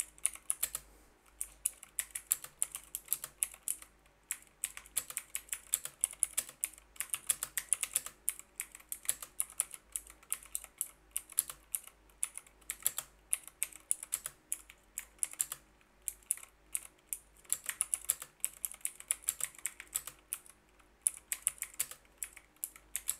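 Keys on a computer keyboard click quickly and unevenly, close by.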